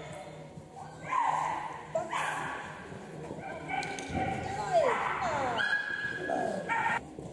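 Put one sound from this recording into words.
A woman calls out commands with animation in a large echoing hall.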